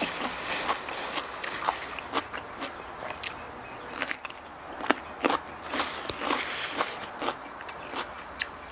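A young woman bites into crunchy radishes and chews noisily close up.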